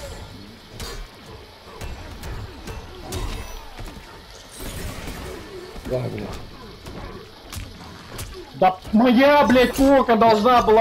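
Punches and kicks land with sharp thuds and cracks.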